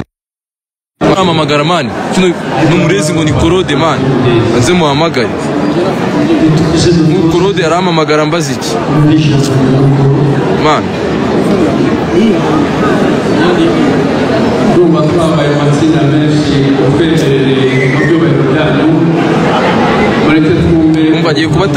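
A young man talks calmly and close to a phone microphone.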